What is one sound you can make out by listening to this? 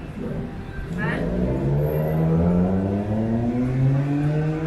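A motorbike engine revs up nearby, rising in pitch.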